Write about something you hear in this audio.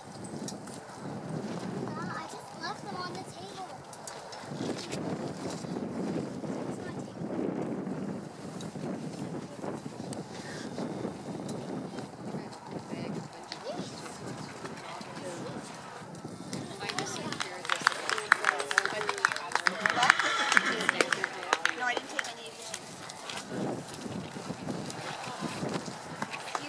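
A horse's hooves thud on soft sand at a canter.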